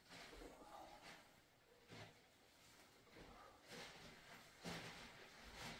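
Kitchenware clinks and knocks as it is picked up and set down.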